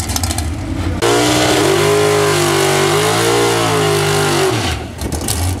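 A drag racing car's engine revs hard in loud bursts.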